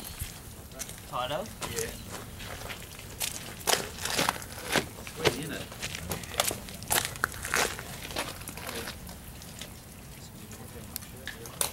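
Footsteps scuff on loose dirt.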